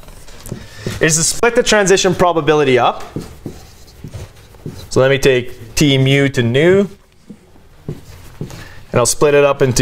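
A man speaks calmly, as if lecturing, in a room with a slight echo.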